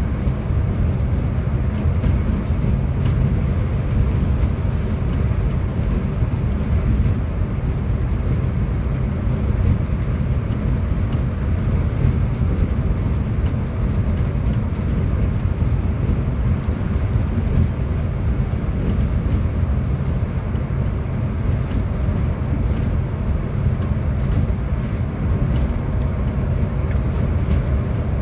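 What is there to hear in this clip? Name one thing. A bus engine rumbles steadily as the bus drives along a highway.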